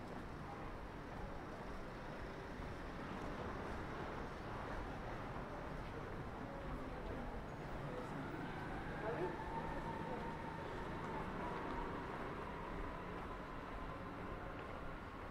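Men and women chat faintly in the distance outdoors.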